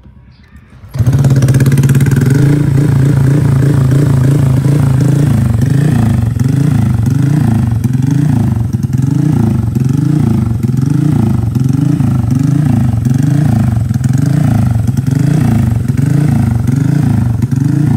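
A motor scooter engine revs up and down again and again in quick, even bursts through a loud exhaust.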